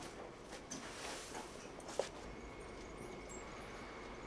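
Hay rustles as a person shuffles through it.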